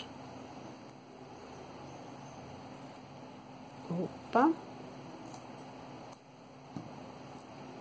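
Plastic beads click softly against each other.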